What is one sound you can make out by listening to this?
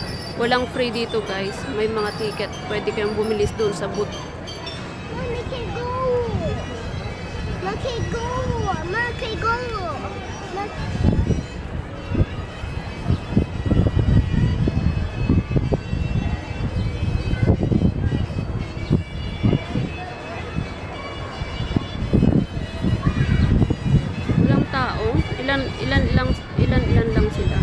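Cheerful fairground organ music plays from a turning carousel.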